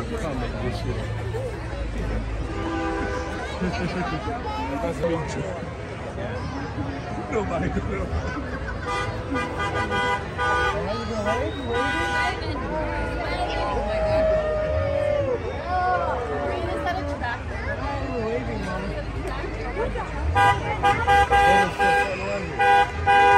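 A crowd of men and women chatters and calls out nearby outdoors.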